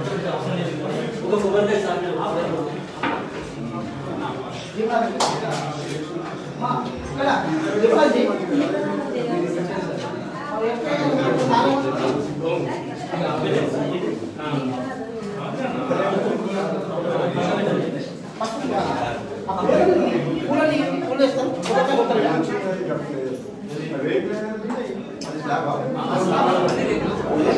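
Several men talk loudly over one another nearby in a small echoing room.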